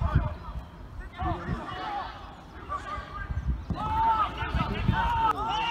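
Men shout across an outdoor pitch.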